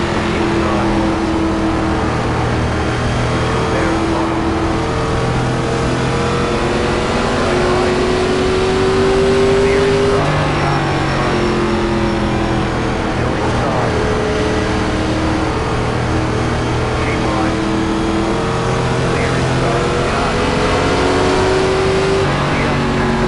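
Other race cars' engines drone close by as they pass.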